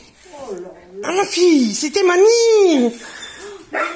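A dog whines and yowls loudly.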